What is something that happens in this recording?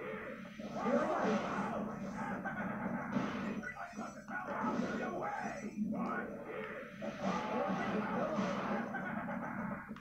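Video game music and racing sound effects play from a television speaker.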